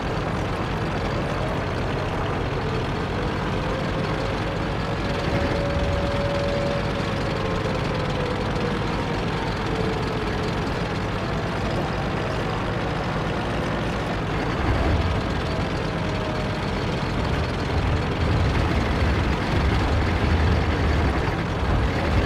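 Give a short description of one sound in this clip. Tank tracks clatter over stone.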